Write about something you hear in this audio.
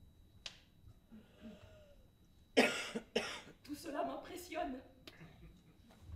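A young woman speaks out loudly and with feeling.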